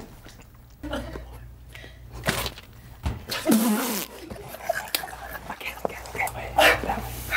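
Young men laugh and shout with excitement.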